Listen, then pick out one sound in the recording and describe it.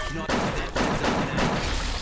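A pistol fires a shot.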